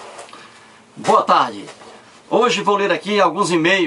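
A middle-aged man speaks calmly close to the microphone.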